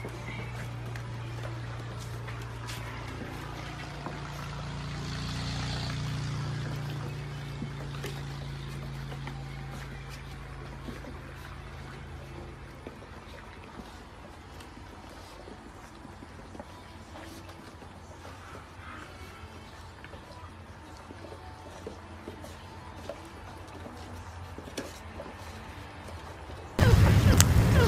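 Puppies lap and slurp food from bowls close by.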